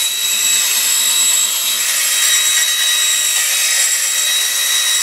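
A band saw whines steadily as it cuts through metal.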